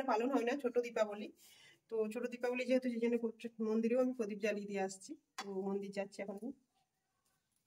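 A woman speaks calmly close by.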